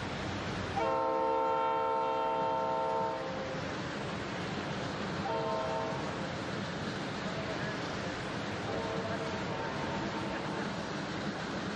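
A train horn blares loudly in several long blasts.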